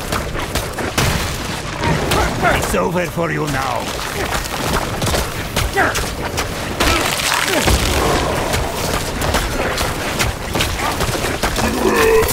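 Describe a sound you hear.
Game combat sound effects of blows and spell blasts crash rapidly.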